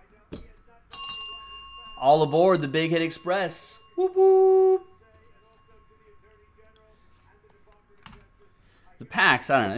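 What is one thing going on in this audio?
A desk bell rings with a bright ding.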